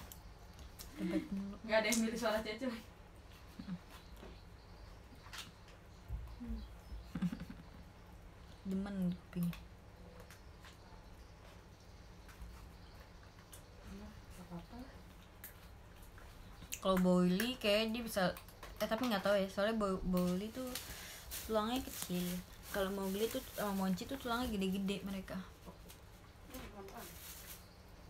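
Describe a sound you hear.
A young woman talks casually and close up, with pauses.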